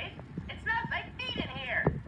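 A man speaks excitedly through a television speaker.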